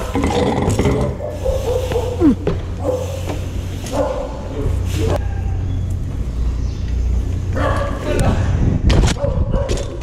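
A bike frame clatters and knocks as it lands.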